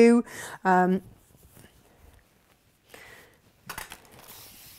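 Fabric rustles as it is shaken and handled.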